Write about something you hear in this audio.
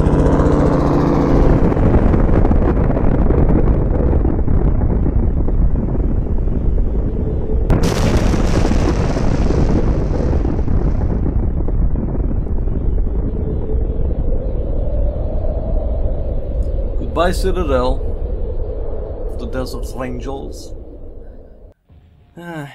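A huge explosion booms and rumbles deeply, slowly fading away.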